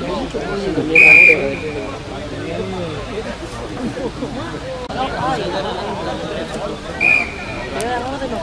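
A referee blows short blasts on a whistle.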